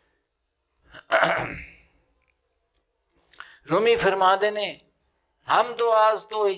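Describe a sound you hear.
An elderly man speaks slowly and expressively into a close microphone, in short bursts with pauses.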